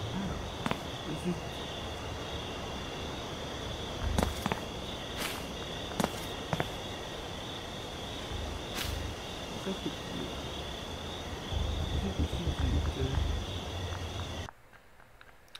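Footsteps crunch over the ground outdoors.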